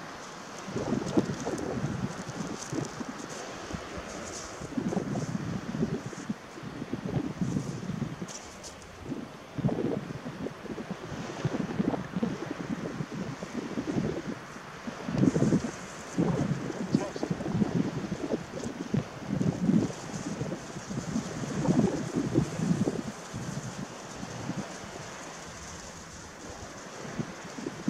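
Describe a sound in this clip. Small waves wash gently onto a pebble shore in the distance.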